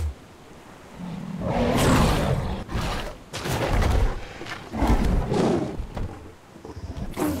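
A large dinosaur roars loudly.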